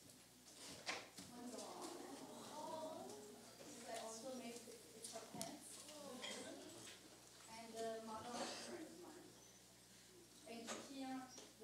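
A woman speaks faintly away from the microphone.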